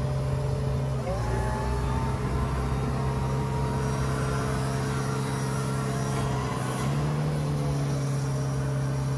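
A hydraulic pump whines as a hopper tips up, the pitch shifting and then dropping.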